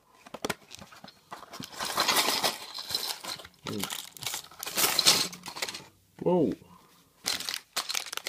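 Cardboard packaging rustles and scrapes as it is opened.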